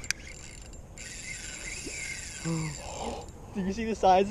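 A reel whirs as its line is wound in.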